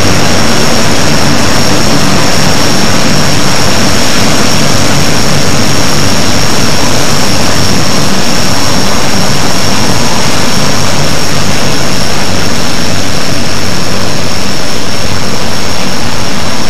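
Propeller engines drone steadily close by.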